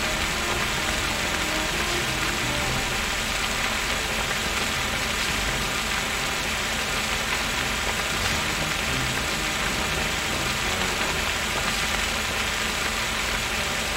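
Water sprays steadily from a hose.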